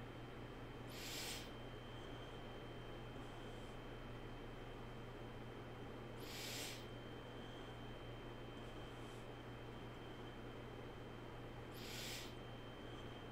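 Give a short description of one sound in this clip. A man breathes in and out slowly near a microphone.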